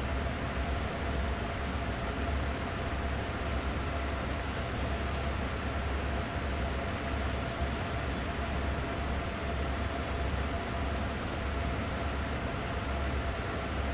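A diesel locomotive engine rumbles steadily as a train rolls along.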